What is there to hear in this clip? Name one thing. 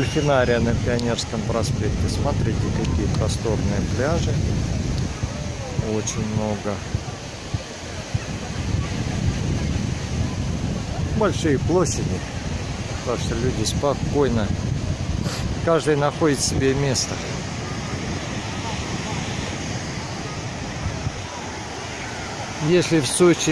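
A crowd of people chatters and calls out across a busy beach outdoors.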